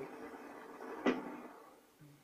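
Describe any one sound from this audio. A single gunshot rings out from a video game.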